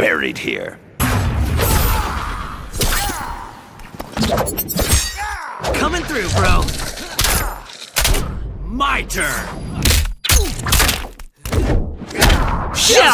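Blades clash and strike in quick fighting blows.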